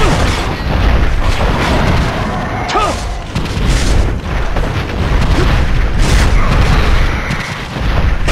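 A sword slashes and strikes with heavy thuds.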